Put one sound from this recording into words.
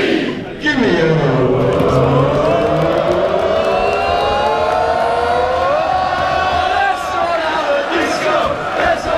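A young man sings loudly into a microphone over loudspeakers.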